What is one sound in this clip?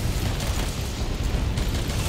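A blast explodes with a deep boom.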